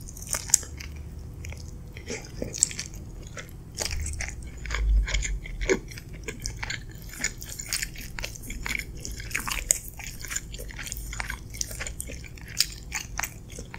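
A woman chews and smacks her lips close to a microphone.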